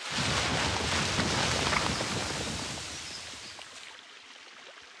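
A loud rumbling whoosh of dust swells and slowly fades away.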